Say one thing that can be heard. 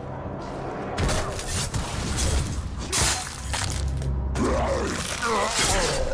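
Heavy blows thud and crunch in a close fight.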